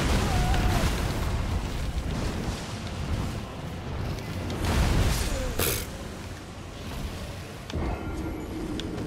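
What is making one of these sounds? Loud rumbling and crashing battle noise roars through the start.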